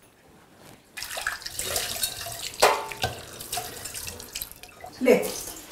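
Water runs into a sink.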